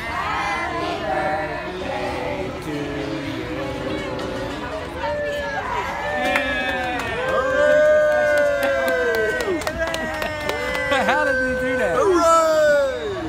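A group of men and women sing together close by.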